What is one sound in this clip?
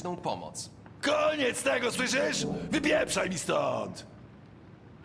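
An older man shouts angrily.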